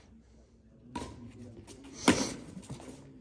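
A racket strikes a shuttlecock with a sharp thwack.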